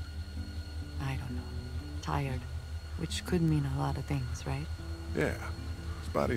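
A woman speaks softly and wearily.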